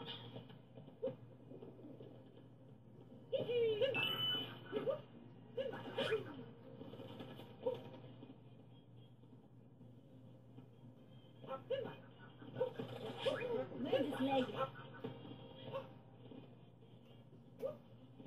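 Video game sound effects chirp and bleep from a television.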